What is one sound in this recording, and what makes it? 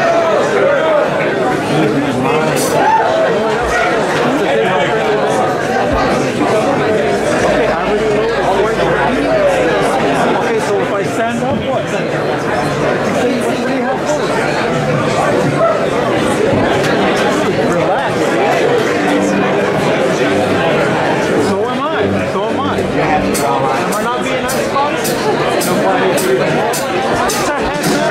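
A keyboard plays along with the band.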